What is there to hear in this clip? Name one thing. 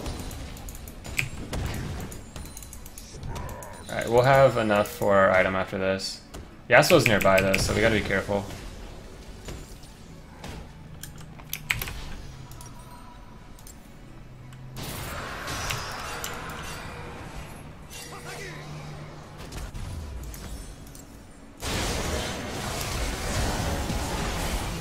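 Video game spell effects and hits clash and crackle.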